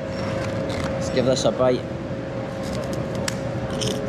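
A crisp chip crunches as a man bites it.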